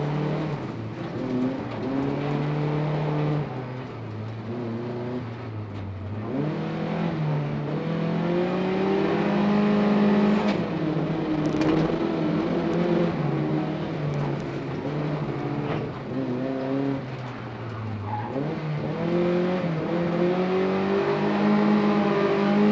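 A car engine roars close by, revving up and down.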